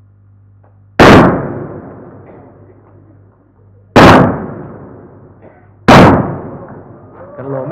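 Guns fire three loud shots that echo in a hall.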